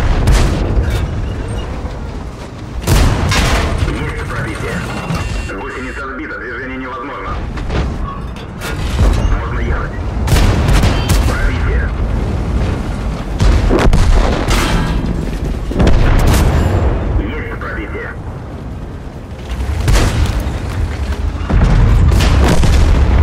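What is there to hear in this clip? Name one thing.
Tank cannons fire with loud booming blasts.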